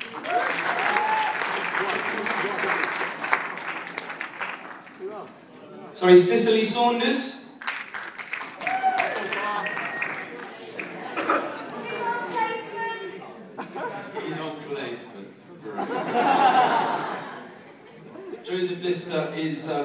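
Men speak on a stage, heard from afar in a hall that echoes.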